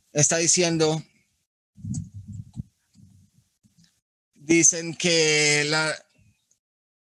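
An older man speaks over an online call.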